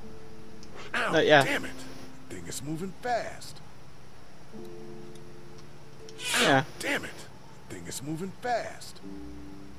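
A man cries out in pain and curses with frustration.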